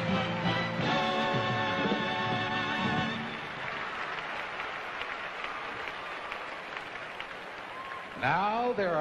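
An audience claps and cheers.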